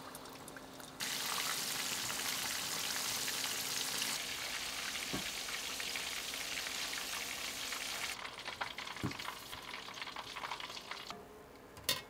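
Hot oil sizzles and crackles loudly as chicken fries.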